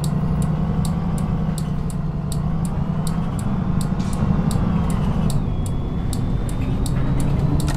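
A bus indicator ticks rapidly and evenly.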